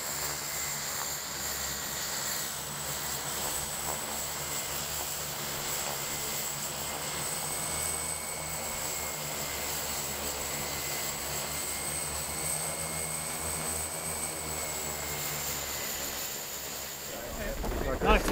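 Twin propeller engines drone steadily as a small plane taxis closer.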